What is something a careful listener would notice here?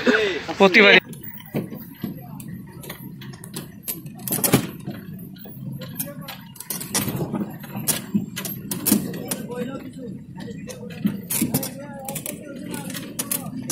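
A truck rattles and knocks as it jolts over a bumpy dirt track.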